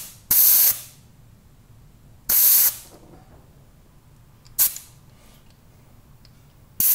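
Short bursts of compressed air hiss loudly into a tyre.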